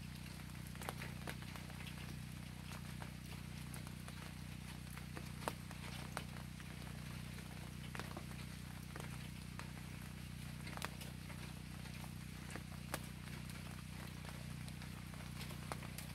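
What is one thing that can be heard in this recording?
Rain falls steadily outdoors, with drops pattering and tapping nearby.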